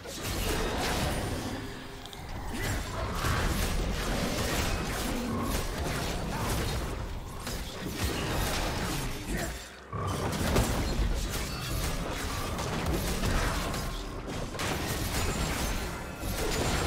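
Magic blasts and weapon strikes clash in a fast video game battle.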